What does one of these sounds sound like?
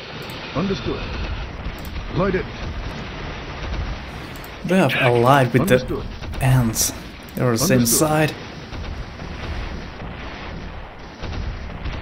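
Small guns fire in rapid bursts.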